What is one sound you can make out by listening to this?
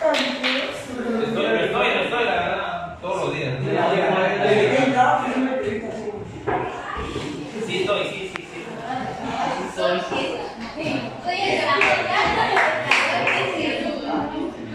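Young people chatter in the background.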